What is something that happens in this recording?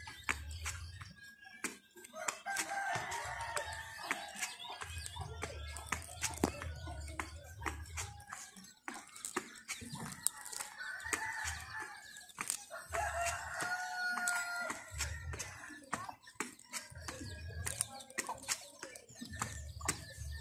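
Shoes scuff and tap on concrete.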